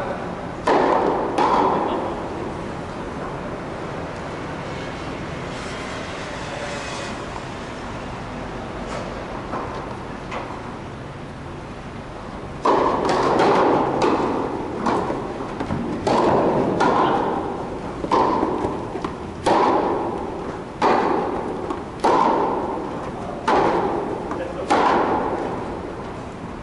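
Tennis balls are struck with rackets, each hit echoing through a large hall.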